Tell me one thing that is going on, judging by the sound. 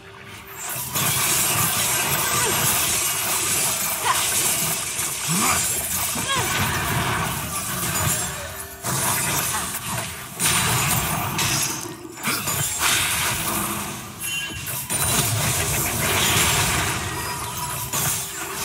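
Game characters clash with blasts and magic spell effects.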